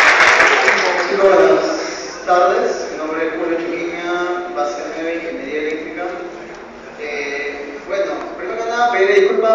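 A man speaks through a loudspeaker in an echoing hall.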